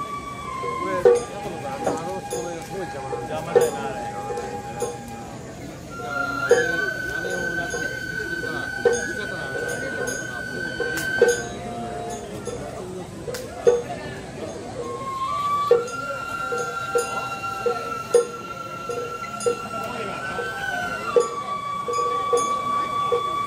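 A drum beats at a slow, steady pace on a festival float.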